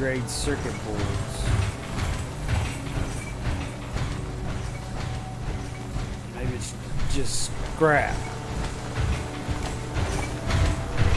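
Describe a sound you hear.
Heavy armoured footsteps thud steadily on a hard floor.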